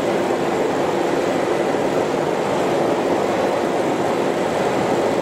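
Machine rollers whir and hum steadily.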